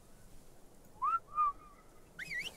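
A small creature lets out a short, high chirp.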